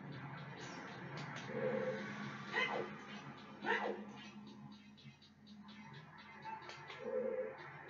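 A video game's sound effects and music play from a television speaker.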